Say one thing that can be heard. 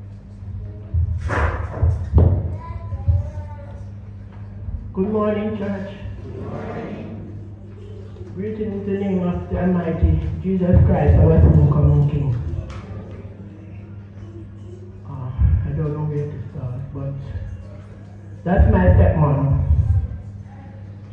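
A woman speaks through a microphone and loudspeakers.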